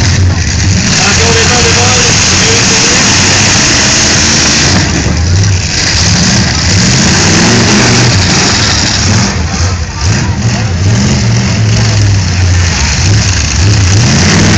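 Car engines roar and rev loudly.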